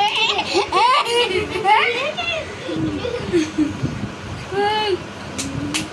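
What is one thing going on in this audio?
A young boy laughs and shrieks close by.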